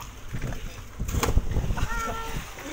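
A person jumps into the sea with a big splash.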